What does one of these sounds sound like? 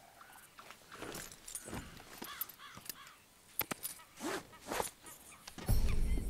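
A man speaks calmly and softly to a horse.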